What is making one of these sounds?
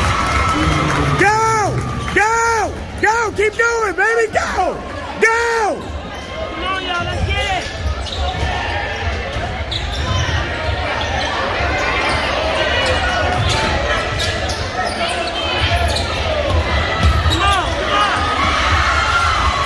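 Sneakers squeak sharply on a hardwood floor.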